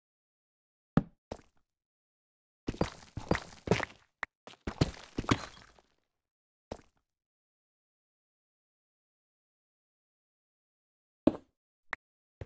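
A stone block is placed with a dull thud.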